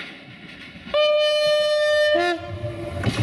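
A train horn blares loudly.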